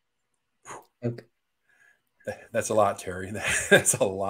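A middle-aged man talks and chuckles into a microphone over an online call.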